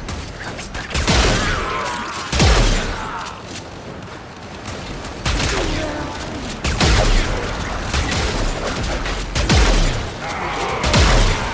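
Heavy energy blasts boom and crackle in loud bursts.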